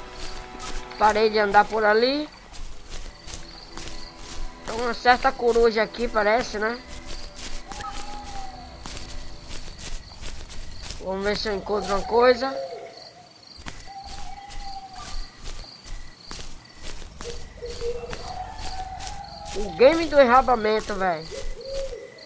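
A young man talks with animation in short bursts close to a microphone.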